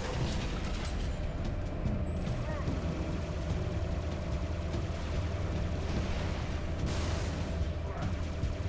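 A spaceship engine hums steadily with a low drone.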